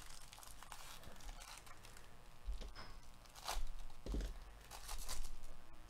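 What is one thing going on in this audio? Gloved hands crinkle and rustle a plastic foil wrapper.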